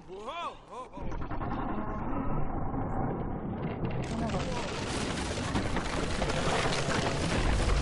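Wooden boards creak and clatter loudly.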